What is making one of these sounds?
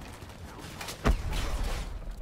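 Gunfire rings out in sharp bursts.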